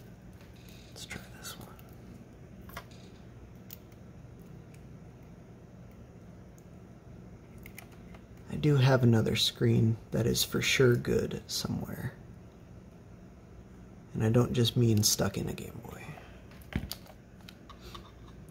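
Small plastic parts click and tap softly as they are handled.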